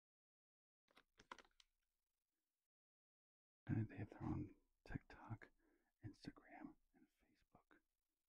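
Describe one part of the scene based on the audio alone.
A plastic wrapper crinkles close to a microphone.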